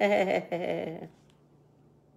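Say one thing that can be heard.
A woman laughs close to a microphone.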